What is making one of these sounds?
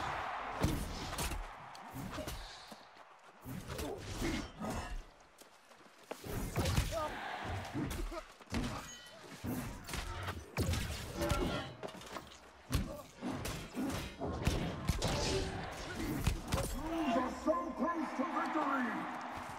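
Weapons clash and magic blasts crack in quick bursts.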